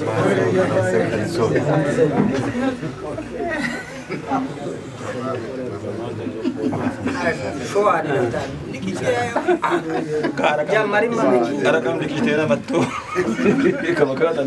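Men laugh together.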